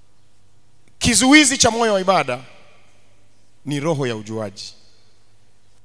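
A young man preaches with animation through a microphone, his voice echoing in a large hall.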